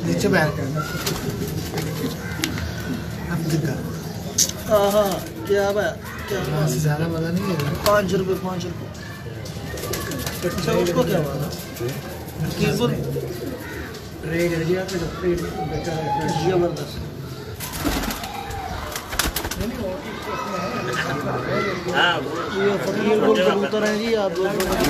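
Pigeons coo in low, throaty bursts close by.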